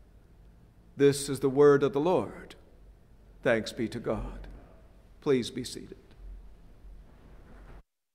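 An elderly man speaks with feeling into a microphone.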